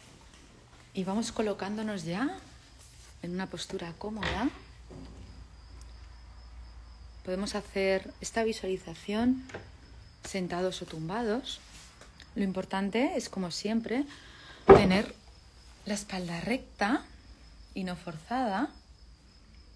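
A woman talks with animation close to a phone's microphone.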